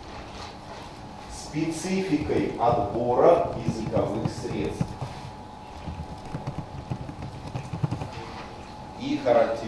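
Keys clatter on a keyboard as someone types.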